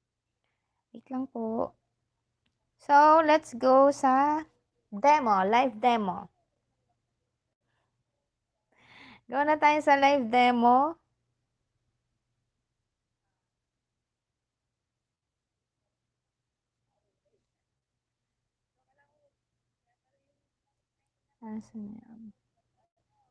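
A woman speaks calmly and close to a microphone, in short bursts with long pauses.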